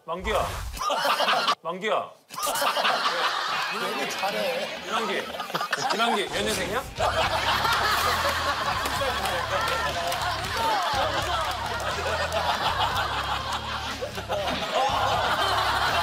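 A middle-aged man shouts with animation, close by.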